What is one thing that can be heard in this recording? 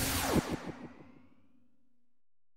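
A swirling whoosh fades away.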